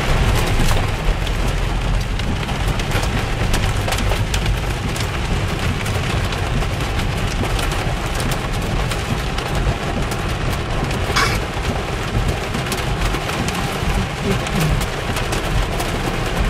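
Heavy rain drums and patters on a car's windscreen.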